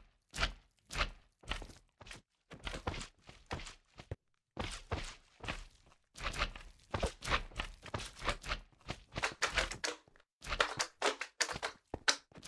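Slimes squelch as they bounce about.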